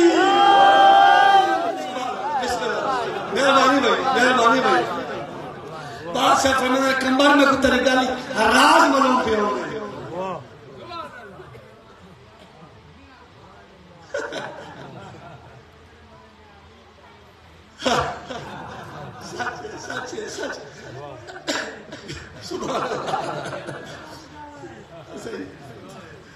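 A man recites with animation into a microphone, heard over a loudspeaker.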